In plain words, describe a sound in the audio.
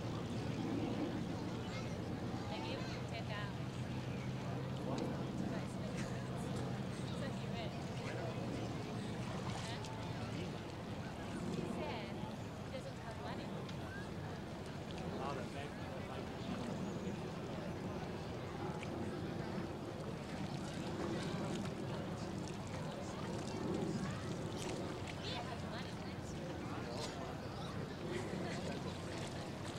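A crowd of people chatters nearby outdoors.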